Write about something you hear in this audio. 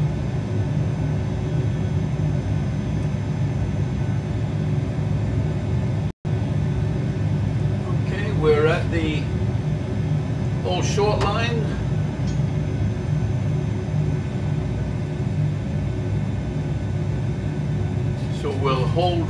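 A jet engine hums low and steady while an airliner taxis.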